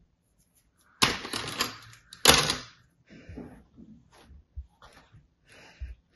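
Sand crunches and rustles loudly as it is pressed and broken up.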